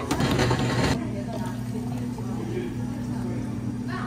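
Juice pours from a blender jug into a cup.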